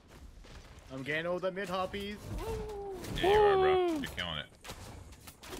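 A man speaks with animation into a close microphone, at times shouting.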